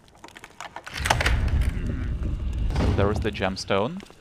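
A heavy stone panel slides open with a low, grinding rumble.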